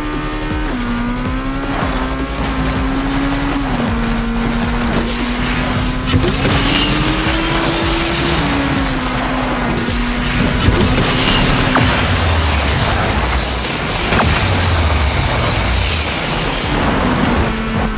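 A car engine roars at high speed, its pitch rising and falling with the gears.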